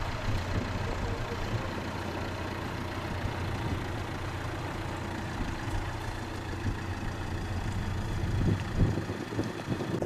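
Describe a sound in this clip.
Cars drive slowly past on a snowy road.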